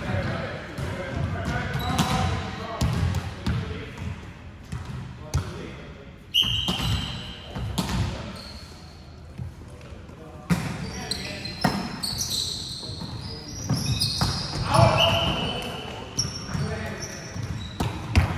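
A volleyball thumps off players' arms and hands in a large echoing hall.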